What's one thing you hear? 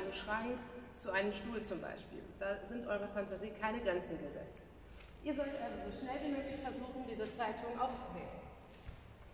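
A young woman speaks clearly and with animation in a large echoing hall.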